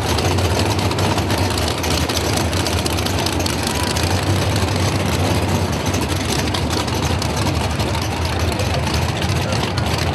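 Tyres screech as they spin on the track.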